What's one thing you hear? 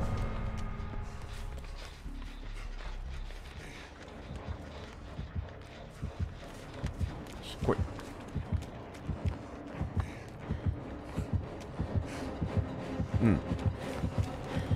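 Footsteps crunch quickly through grass and dirt.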